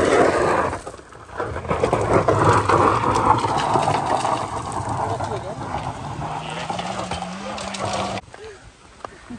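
Car tyres spin and spray gravel.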